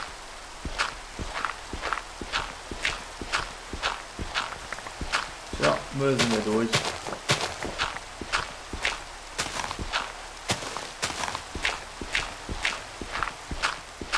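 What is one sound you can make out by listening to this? A shovel digs into dirt in quick, repeated crunching thuds.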